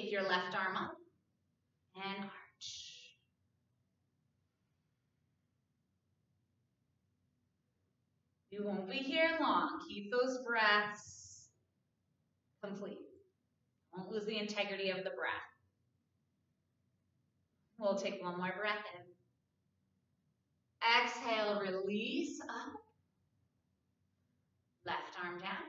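A young woman speaks calmly and clearly close to a microphone, in short phrases with pauses.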